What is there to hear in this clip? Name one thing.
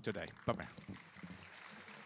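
An elderly man speaks briefly into a microphone.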